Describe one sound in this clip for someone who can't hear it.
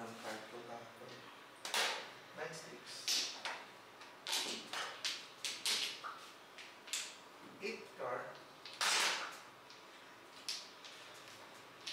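Plastic game tiles click and clack against each other and the table.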